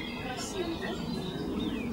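A young child talks nearby.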